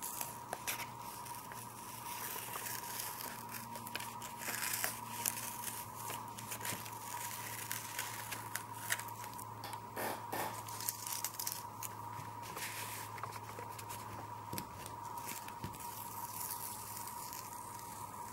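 Masking tape peels off paper with a sticky tearing sound.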